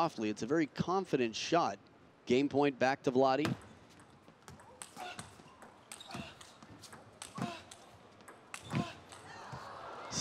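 A table tennis ball clicks back and forth off paddles and the table in a fast rally.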